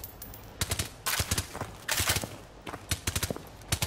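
A rifle fires short sharp shots close by.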